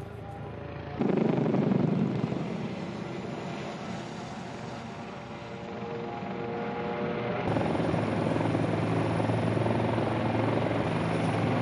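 A helicopter's rotor thuds overhead.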